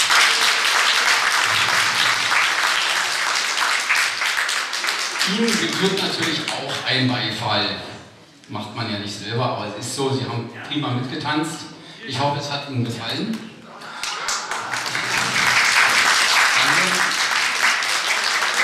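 A crowd claps and applauds in a large room.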